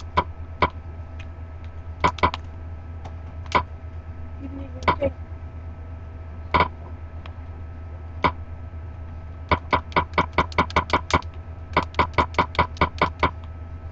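Short, sharp menu clicks sound, sometimes alone and sometimes in quick runs.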